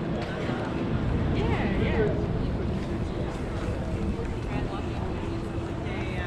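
Several men and women chat at a distance outdoors.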